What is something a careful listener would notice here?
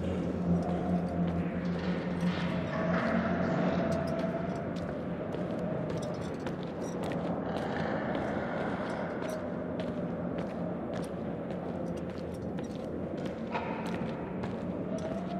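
Footsteps tread slowly across a hard floor in a large, echoing room.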